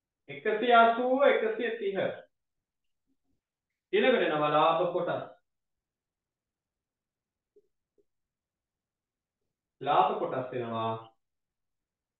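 A man speaks calmly, explaining in short phrases.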